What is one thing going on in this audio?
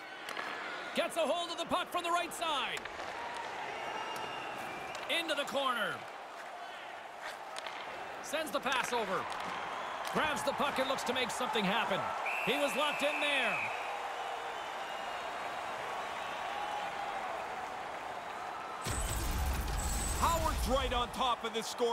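A hockey stick smacks a puck.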